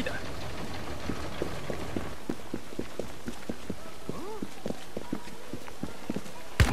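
Footsteps run on wet cobblestones.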